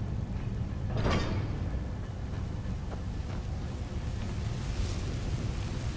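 Flames roar and whoosh from a fire jet.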